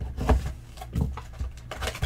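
A blade slits open the plastic wrap on a box.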